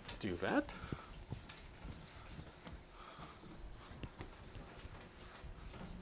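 An eraser rubs against a whiteboard.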